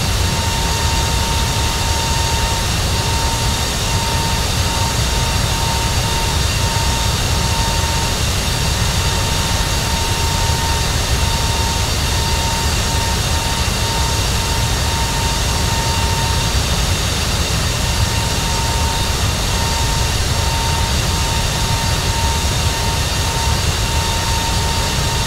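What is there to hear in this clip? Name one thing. The turbofan engines of a jet airliner drone and whine steadily at cruise.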